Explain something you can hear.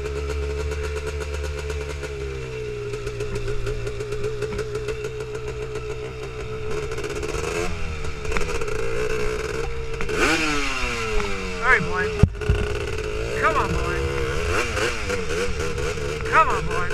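A quad bike engine drones steadily and revs up and down.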